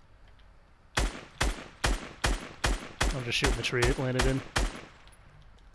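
A rifle fires a quick series of sharp shots.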